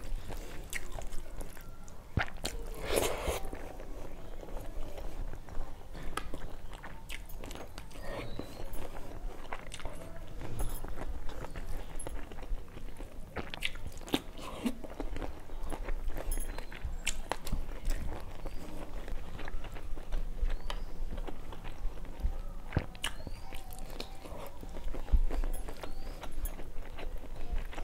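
A woman chews and smacks her lips close to a clip-on microphone.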